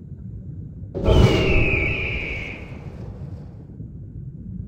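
A magic spell bursts with a loud whoosh and a ringing chime, then fades.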